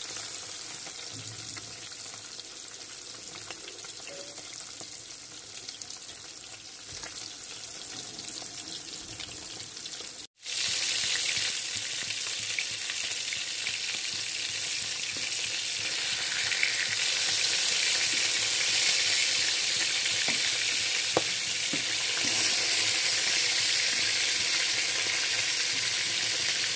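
Fish pieces sizzle in hot oil in a pan.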